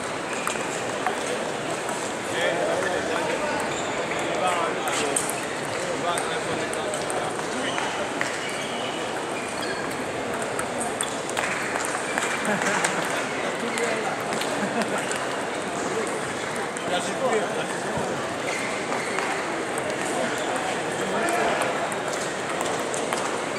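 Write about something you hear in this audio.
Table tennis balls click sharply on tables and paddles nearby and around the hall.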